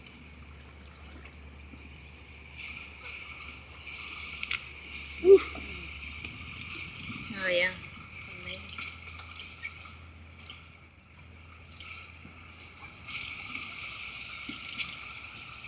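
Water laps gently around the boat, outdoors on open water.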